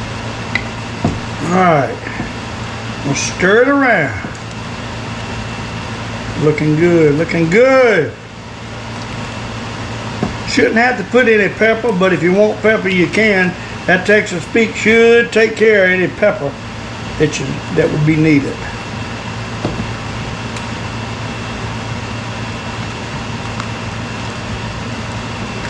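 A wooden spoon stirs thick soup in a pot.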